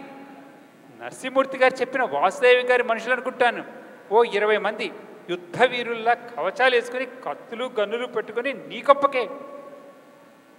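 Another man answers loudly through loudspeakers.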